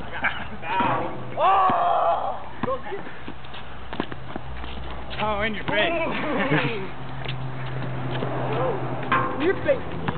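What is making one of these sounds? A basketball clangs off a metal hoop.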